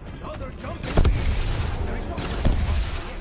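An explosion booms loudly.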